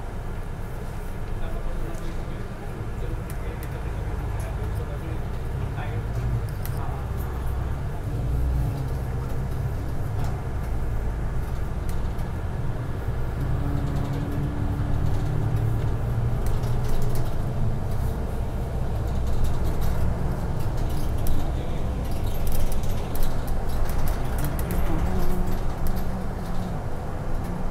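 A bus engine hums low and steady while the bus drives along a road.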